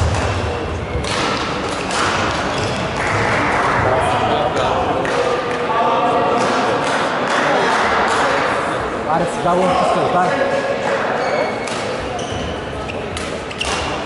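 Shoes squeak on a hard court.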